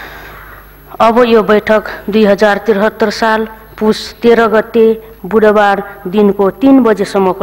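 A man speaks steadily through a microphone in a large hall.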